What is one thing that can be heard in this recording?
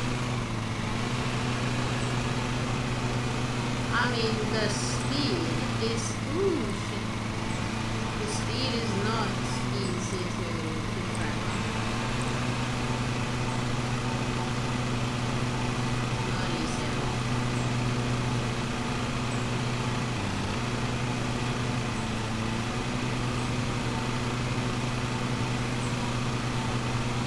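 A small lawn mower engine drones steadily.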